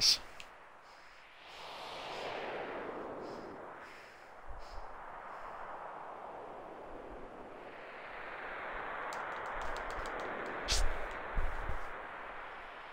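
Wind howls in waves, rising and falling.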